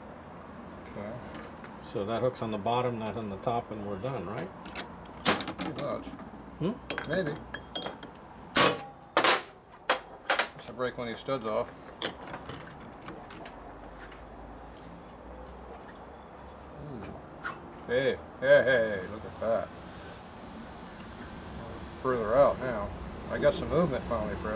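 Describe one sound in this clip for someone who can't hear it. Metal parts clink and clack as they are handled.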